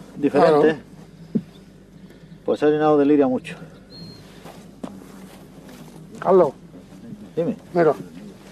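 A young man speaks loudly in short bursts, close by.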